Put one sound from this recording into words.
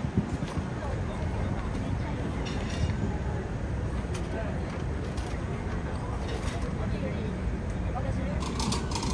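A crowd of men and women chatter and talk all around, outdoors.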